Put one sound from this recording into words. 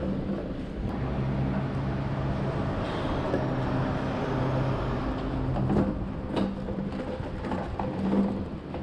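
A truck engine idles close by with a low, steady hum.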